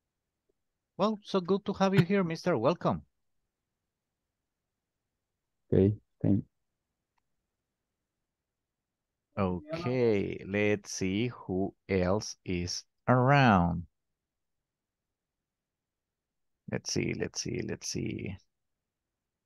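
A man speaks calmly through a headset microphone over an online call.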